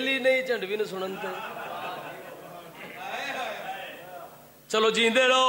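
A man chants loudly into a microphone, heard through a loudspeaker.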